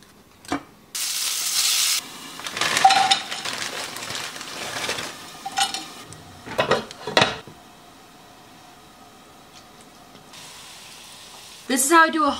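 Vegetables sizzle in a hot pan.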